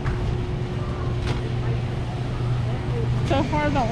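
A shopping cart rolls over a smooth floor.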